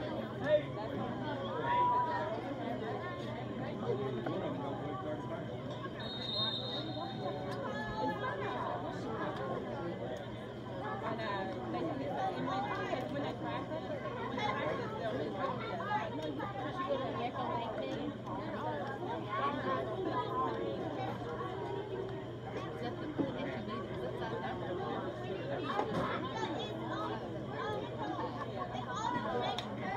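A crowd of people chatters nearby outdoors.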